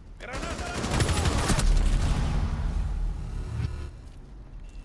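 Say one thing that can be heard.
Gunfire bursts loudly and rapidly.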